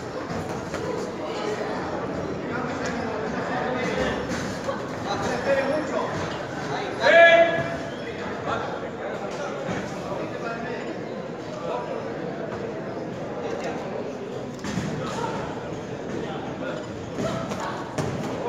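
Gloved punches thud against each other.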